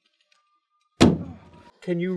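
A body thumps onto a car hood.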